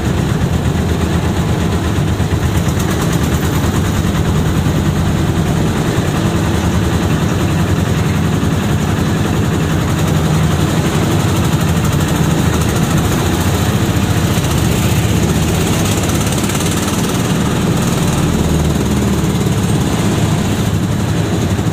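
Traffic passes close by on the street.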